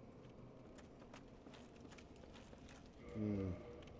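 Footsteps clatter on wooden planks.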